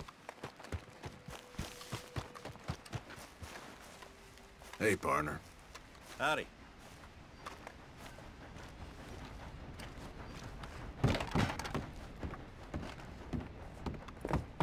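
Footsteps thud steadily on earth and wooden boards.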